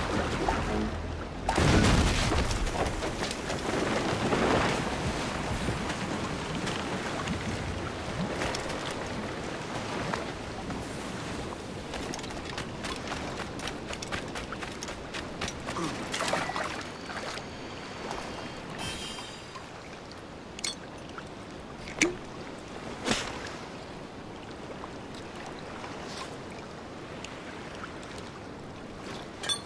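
Waves wash gently onto a sandy shore.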